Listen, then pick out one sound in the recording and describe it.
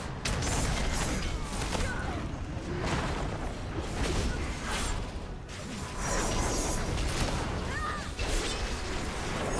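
Magic blasts crackle and boom in a hectic fight.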